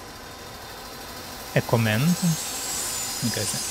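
A spinning saw blade whirs and grinds against metal.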